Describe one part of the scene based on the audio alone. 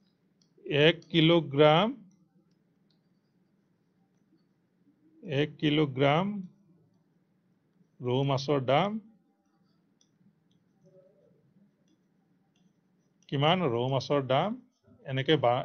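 A middle-aged man speaks calmly and slowly into a microphone, in short phrases with pauses.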